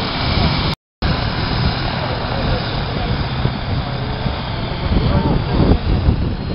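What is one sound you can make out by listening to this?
A helicopter's engine and rotor roar loudly and steadily close by.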